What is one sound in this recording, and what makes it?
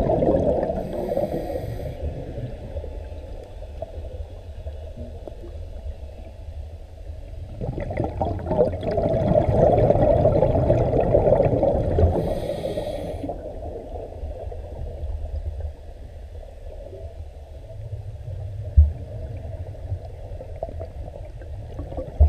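Water murmurs and rumbles with a low, muffled underwater hush.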